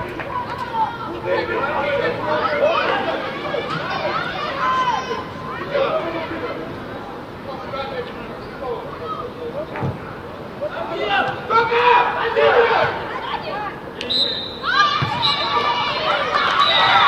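Young players shout and call to each other across an open outdoor pitch.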